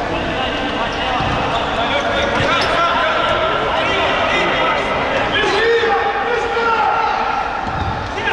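Sneakers squeak on a hard court floor as players run.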